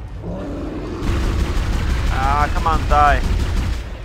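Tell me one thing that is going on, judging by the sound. A weapon fires several sharp shots.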